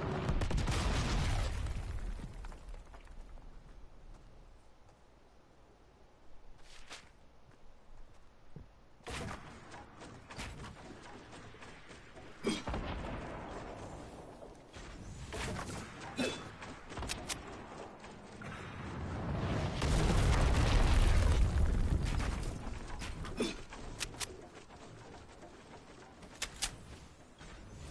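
Footsteps patter on grass and wood.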